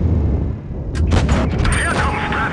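A tank cannon fires with a loud bang.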